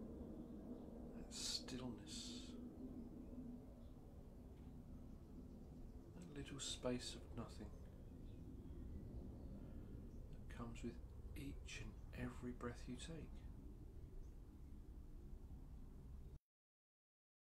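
A man speaks calmly and softly, close by.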